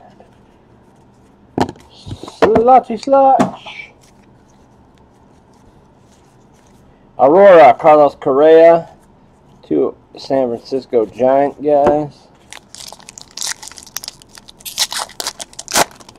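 Trading cards slide and flick as a hand sorts through a stack.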